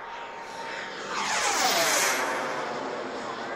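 A propeller plane's engine roars past overhead, its pitch dropping as it passes.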